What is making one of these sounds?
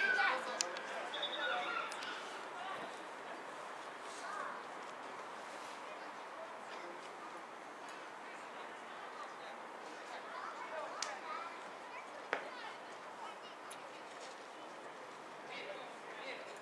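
Footballers shout to each other across an open field in the distance.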